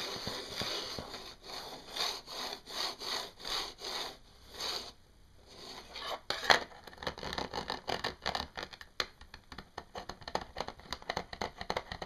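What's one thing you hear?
Hands rub and scratch against a metal mesh close by.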